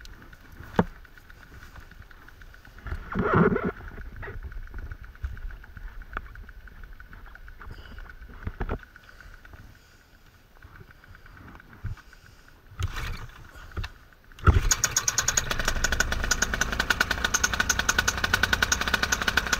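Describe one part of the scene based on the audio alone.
Wind rushes over the microphone outdoors.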